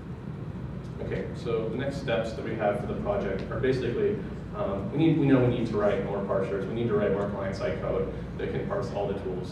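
A man speaks calmly into a microphone, heard through loudspeakers in a large room.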